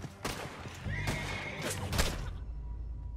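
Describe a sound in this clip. Gunshots crack loudly in quick succession.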